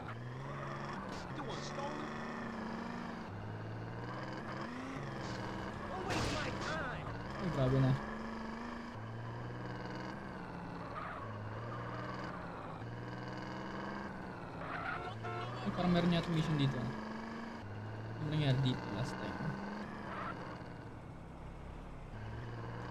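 A car engine drones steadily, rising and dropping in pitch as it shifts gears.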